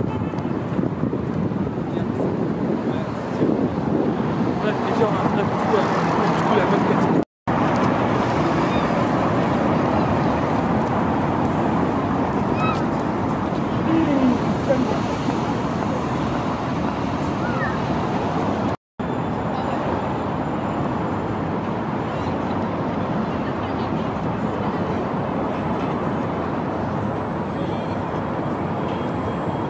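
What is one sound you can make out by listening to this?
A crowd murmurs and chatters outdoors at a distance.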